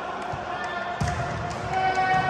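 A volleyball is served with a sharp slap in an echoing hall.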